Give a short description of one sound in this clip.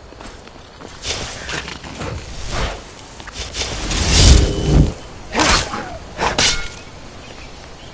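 A magic blast crackles and booms.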